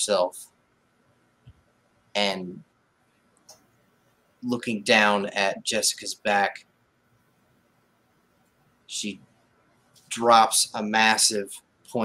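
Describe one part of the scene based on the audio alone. A man speaks in a low, measured voice over an online call, in short bursts with pauses.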